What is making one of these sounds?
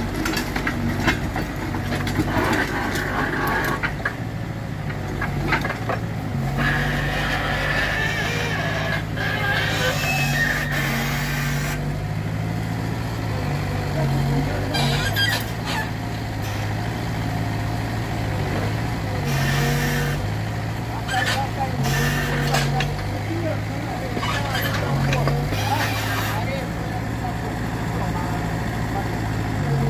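A small excavator's diesel engine rumbles and revs steadily close by.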